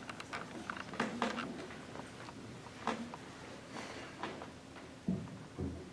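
A piano plays soft, scattered notes.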